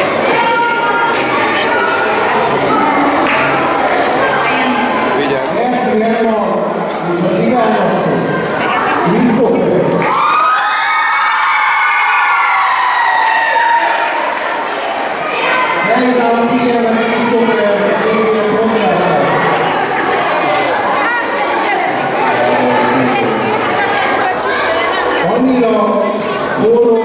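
Music plays through a loudspeaker in a large echoing hall.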